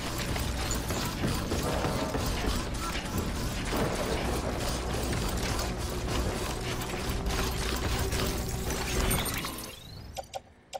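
Stacked cargo creaks and rattles on a carrier's back.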